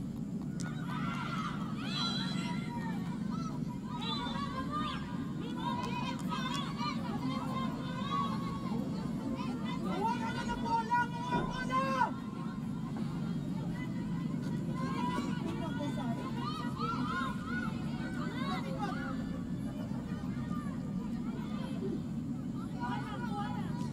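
Young women shout and call to each other across an outdoor field.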